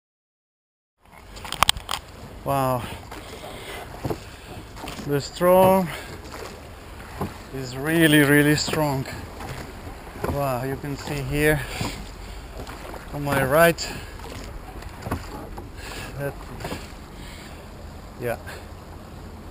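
Oar blades splash and dip into water.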